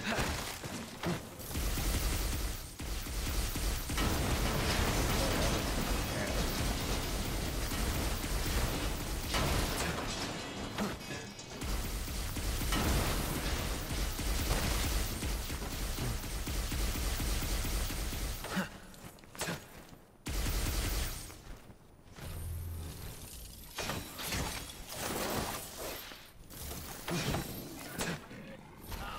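Swords slash and clang in a fast fight.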